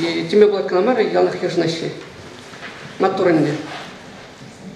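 A man reads aloud into a microphone, heard through loudspeakers.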